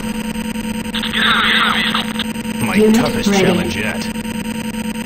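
A laser gun fires in short crackling bursts.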